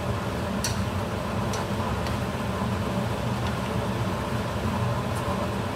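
Whole shrimp sizzle in oil in a frying pan.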